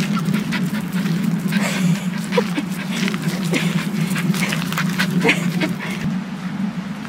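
A small dog pants quickly while running.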